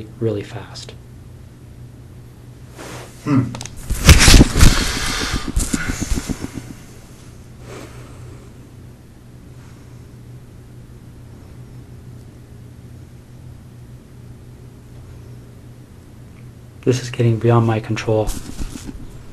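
A man speaks in a low, strained voice, heard through a room microphone.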